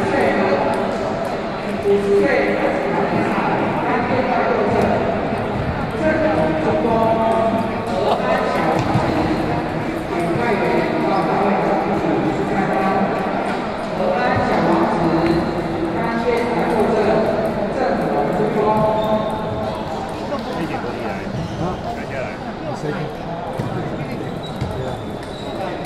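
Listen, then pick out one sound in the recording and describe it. A crowd of men and women chatter in the background.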